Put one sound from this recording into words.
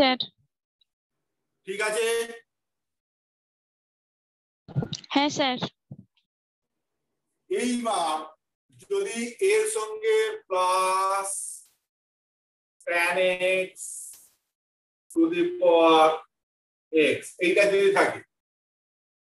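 A middle-aged man speaks calmly, close by, in short phrases with pauses.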